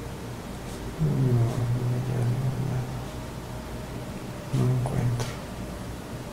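A man snores loudly nearby.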